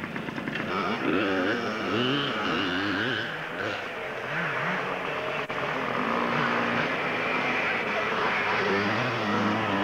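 A small motorbike engine buzzes in the distance.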